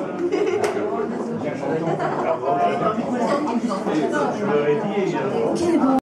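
A piano plays along with the band.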